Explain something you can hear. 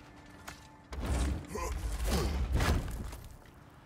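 A heavy wooden chest lid thuds and creaks open.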